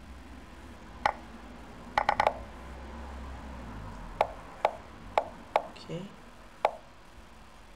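Chess pieces click sharply as moves are played in a game.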